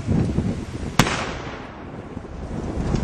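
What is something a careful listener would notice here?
An explosion bursts with a sharp boom that rings out and fades.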